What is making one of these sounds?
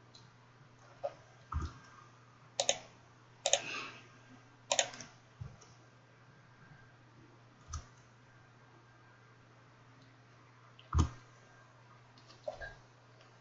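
Short clicks and swishes sound as game cards are played.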